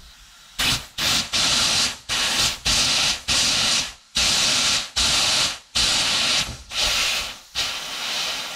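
A small metal tool scrapes rust off a metal part in quick bursts.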